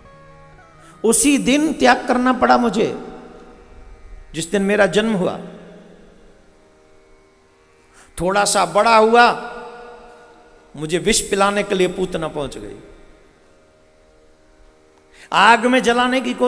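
A man speaks with feeling into a microphone in short bursts, heard through loudspeakers with a slight echo.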